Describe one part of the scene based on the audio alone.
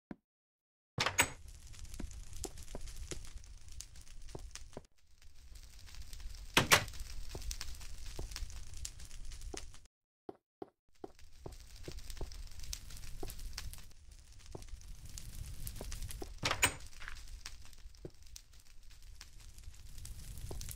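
Footsteps tap on wood and stone.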